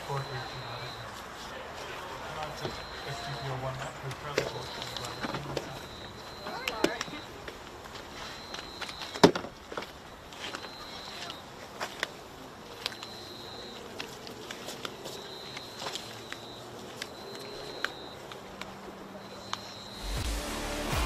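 Players call out across an open field at a distance.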